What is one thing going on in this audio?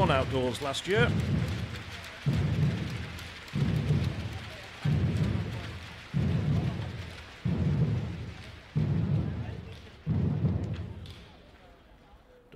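Large drums boom in a slow, steady beat.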